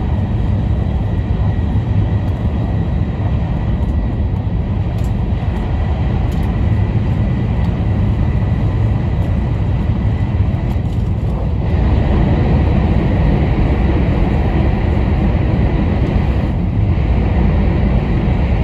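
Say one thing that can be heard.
A train rumbles along steadily, heard from inside a carriage.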